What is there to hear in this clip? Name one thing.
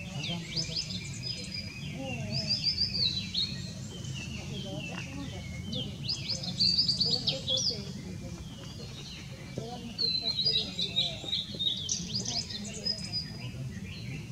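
A blue-and-white flycatcher sings in bursts of clear, high whistled phrases.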